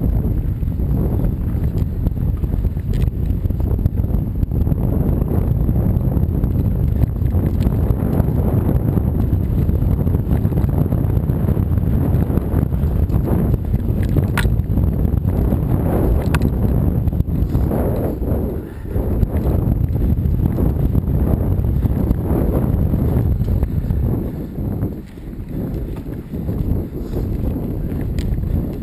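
A bicycle rattles and rumbles over a bumpy dirt trail.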